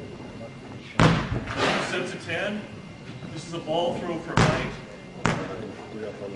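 A heavy ball thuds on a hard floor in a large echoing hall.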